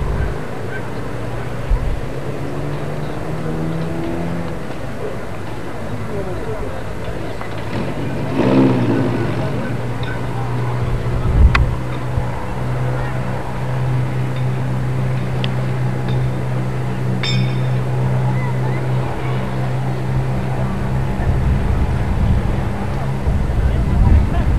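A crowd of spectators murmurs and chatters outdoors.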